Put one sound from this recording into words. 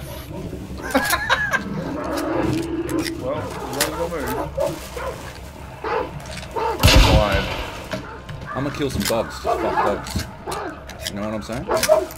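Metal cartridges click as a gun is loaded.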